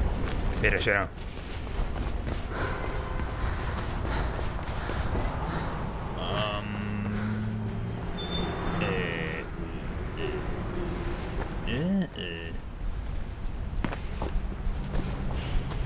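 Quick footsteps thud on a hard surface.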